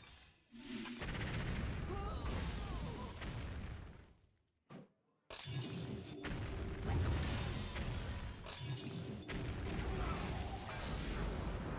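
Magical explosions burst and crackle loudly.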